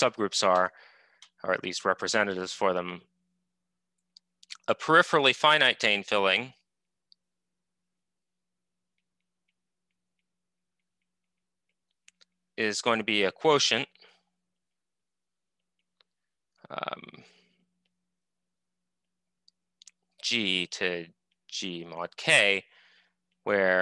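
A man speaks calmly through a microphone, in bursts with pauses, as on an online call.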